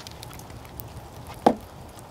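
A smouldering campfire crackles softly.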